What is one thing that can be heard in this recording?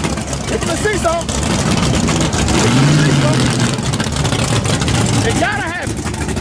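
Race car engines roar loudly and rev up.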